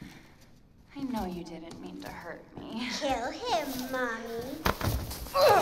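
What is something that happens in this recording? A young woman speaks in a strained, eerie voice close by.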